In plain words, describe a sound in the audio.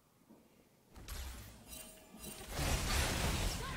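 Fantasy battle sound effects whoosh and crackle.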